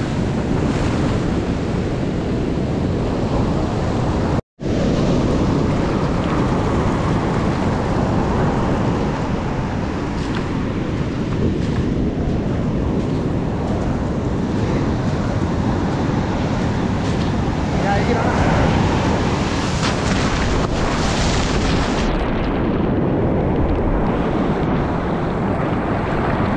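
Foamy water rushes and fizzes over the sand.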